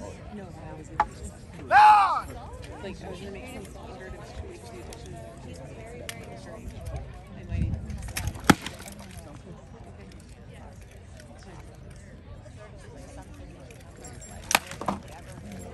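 Swords clash and clang against shields in short sharp strikes.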